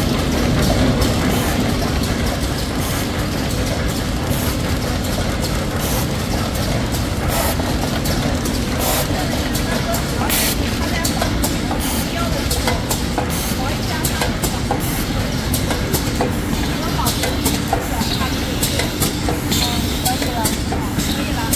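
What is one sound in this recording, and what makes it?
Machine parts click and knock rapidly.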